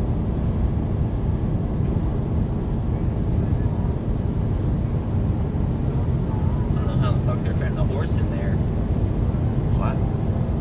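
A car's engine hums steadily as it drives along a highway.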